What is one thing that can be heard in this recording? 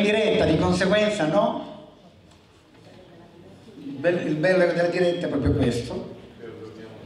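A man speaks through a microphone, heard over loudspeakers.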